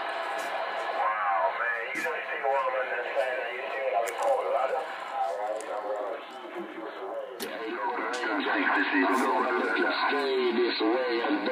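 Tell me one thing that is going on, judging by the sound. A voice speaks through a thin, crackly radio loudspeaker.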